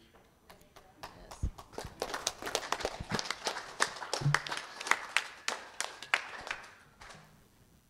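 An audience claps and applauds.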